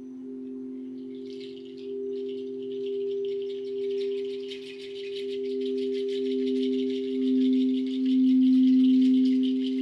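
A gong gives off a high, shimmering wash of sound.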